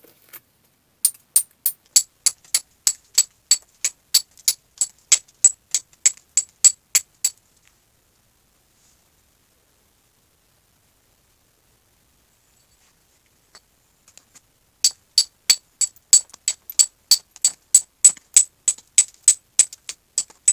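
A mallet taps steadily on a carving chisel, chipping wood.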